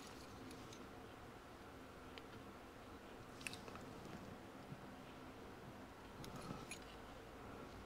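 A small blade scrapes and ticks on a metal gauge face.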